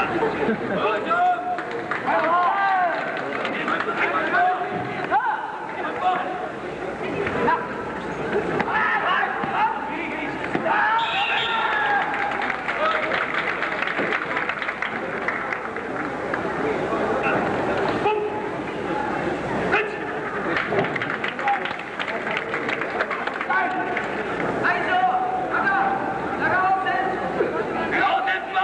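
A large crowd murmurs and calls out in a big echoing hall.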